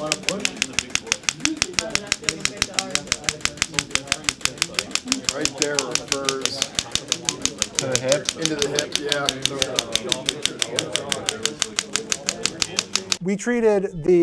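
A massage gun buzzes with a rapid steady hammering.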